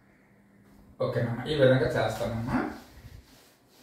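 A man speaks clearly and explains something, close by.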